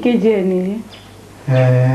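A woman speaks with a high, lilting voice close by.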